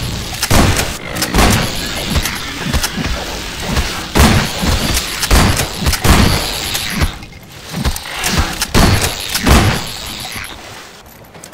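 Giant insect-like creatures chitter and screech in a swarm.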